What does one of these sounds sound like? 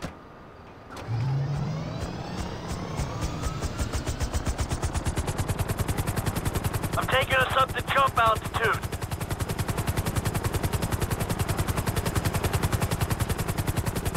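A helicopter's rotor starts up and thumps steadily and quickly as the helicopter lifts off and flies.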